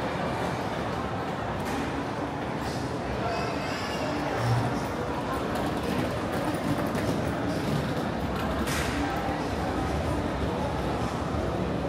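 A steady murmur of a busy indoor walkway echoes around.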